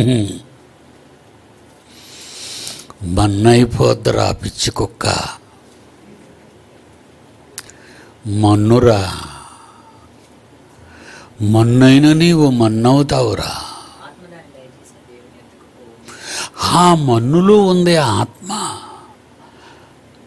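An elderly man speaks slowly into a microphone, in short phrases with pauses.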